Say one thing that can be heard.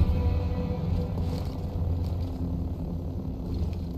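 A glowing energy blade hums steadily.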